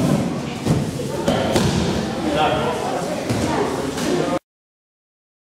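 Bodies thud and scuffle on mats as people wrestle.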